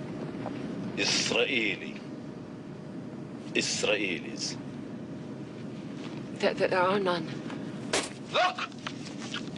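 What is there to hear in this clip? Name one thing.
A woman speaks quietly and tensely nearby.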